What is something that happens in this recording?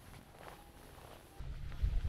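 Footsteps walk on a paved path outdoors.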